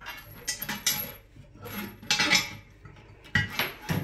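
Flexible metal hoses clink against a ceramic basin.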